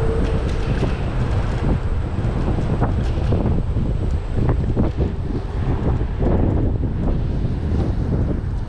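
Wind buffets and roars loudly.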